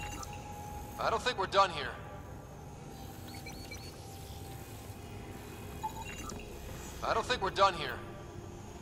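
An electronic scanner trills in quick bursts of chimes.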